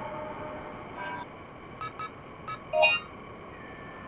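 Video game menu beeps sound as options are selected.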